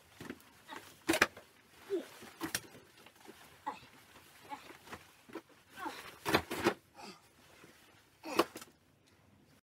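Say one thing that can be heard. Items thump and rustle as a young man rummages.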